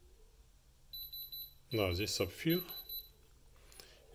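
A handheld electronic tester gives a steady high beep.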